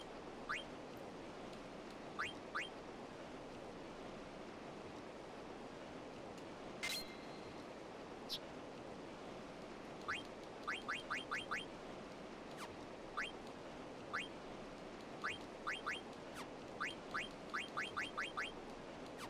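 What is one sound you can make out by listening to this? Short rising electronic beeps chirp as a menu cursor moves.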